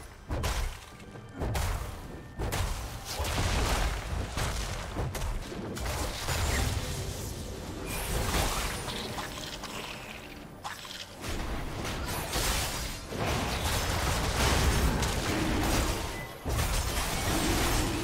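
Game spell effects whoosh and crackle.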